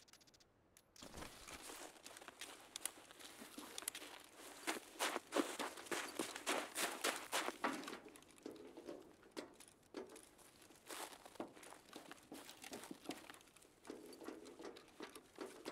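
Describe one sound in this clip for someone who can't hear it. Footsteps crunch quickly through snow and dry grass.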